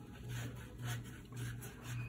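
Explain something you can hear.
A brush swishes across paper.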